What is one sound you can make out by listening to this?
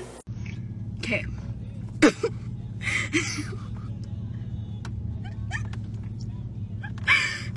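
A young woman laughs and speaks with animation close by.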